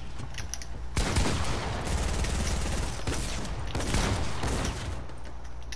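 A gun fires several sharp shots.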